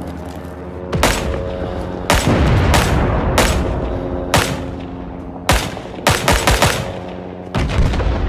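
A rifle fires single loud shots, close by.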